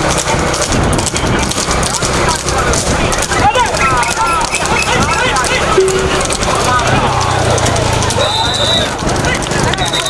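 Horse hooves clatter on a paved road.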